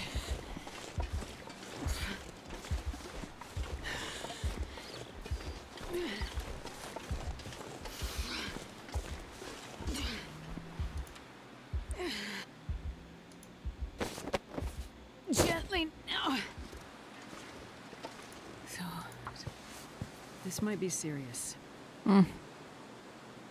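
A young woman talks calmly into a microphone.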